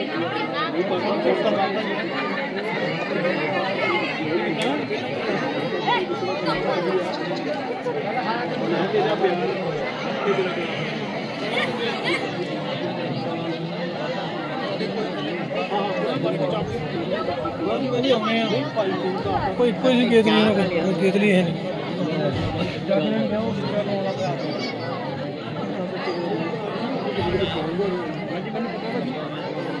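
A large crowd of women and men chatters outdoors.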